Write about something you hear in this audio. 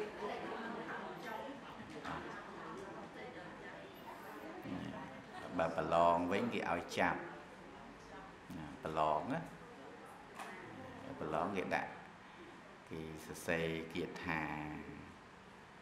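A middle-aged man speaks calmly and warmly into a close microphone, in bursts with pauses.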